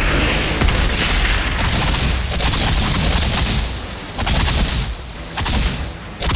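A rapid-fire gun shoots in long bursts.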